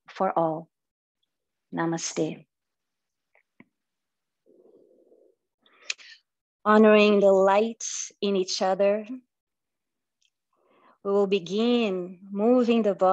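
A woman speaks calmly and slowly through a microphone, as on an online call.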